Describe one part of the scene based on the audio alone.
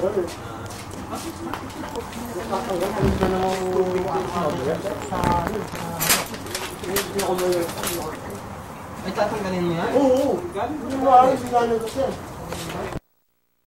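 Young men talk casually close by.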